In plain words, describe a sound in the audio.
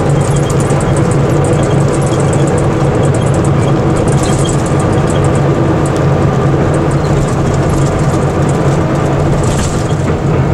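Loose fittings rattle and clatter inside the moving bus.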